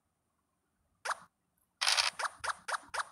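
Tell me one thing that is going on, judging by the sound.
A game die rattles briefly as it rolls.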